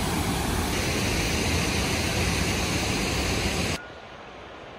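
Water rushes loudly over a weir close by.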